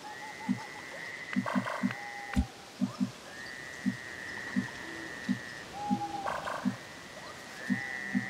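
Soft electronic tones hum steadily.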